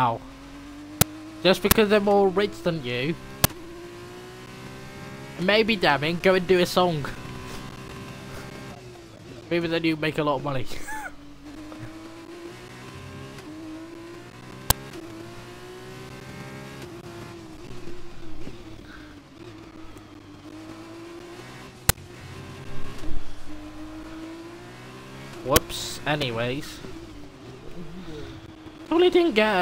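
A racing car engine whines at high revs, rising and falling as gears change.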